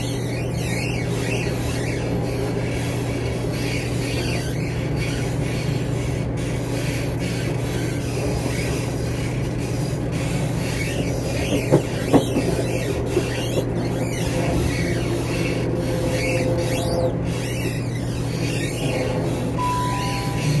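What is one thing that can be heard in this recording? A train's carriage rattles and clicks as it moves.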